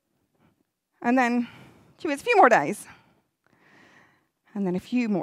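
A woman speaks with animation through a microphone.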